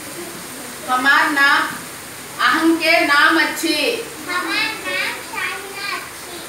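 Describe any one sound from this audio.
A young girl speaks loudly nearby in a small room.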